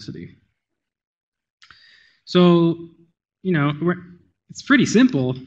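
A man speaks to an audience through a microphone.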